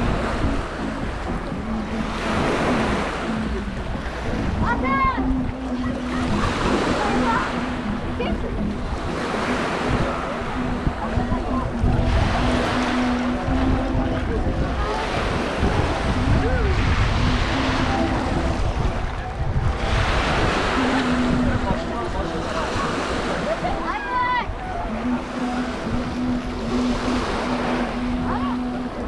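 Small waves wash gently onto a pebbly shore.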